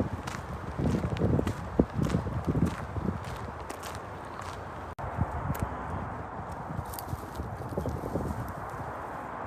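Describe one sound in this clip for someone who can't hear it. Footsteps crunch on gravel close by.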